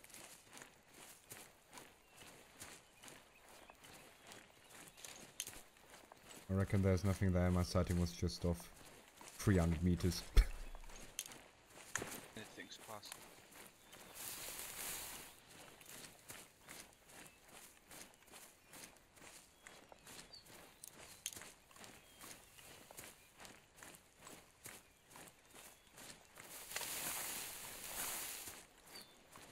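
Footsteps crunch steadily over leaves and twigs.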